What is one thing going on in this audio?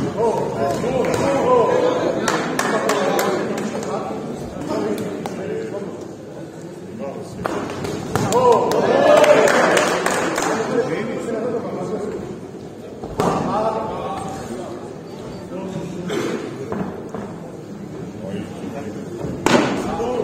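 Gloves thud against a fighter's body.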